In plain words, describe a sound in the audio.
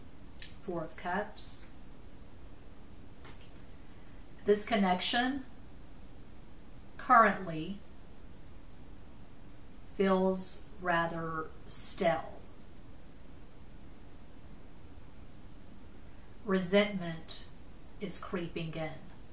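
A woman speaks quietly and slowly, close to a microphone, with long pauses.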